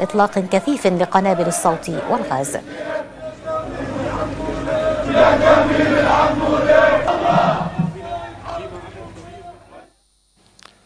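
A crowd of men shouts and chants loudly outdoors.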